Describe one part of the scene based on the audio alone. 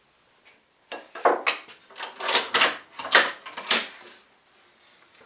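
Wooden parts knock and clatter as they are handled.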